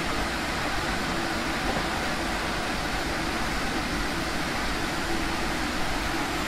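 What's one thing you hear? Wind rushes past the moving train.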